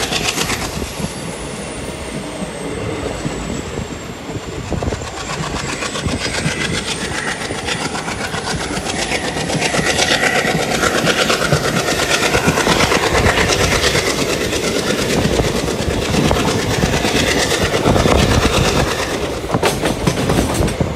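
A train rattles and clatters steadily along the tracks.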